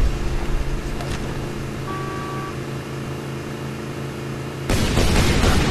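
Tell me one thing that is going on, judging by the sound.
A vehicle engine hums steadily.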